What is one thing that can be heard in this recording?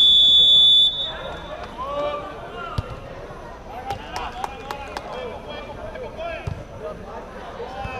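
Players shout to each other across an outdoor pitch.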